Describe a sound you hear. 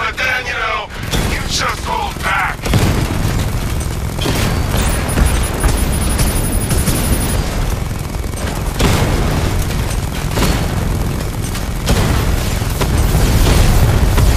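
A heavy vehicle engine rumbles low and steady.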